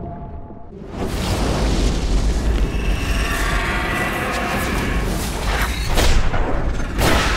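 A powerful energy blast roars loudly.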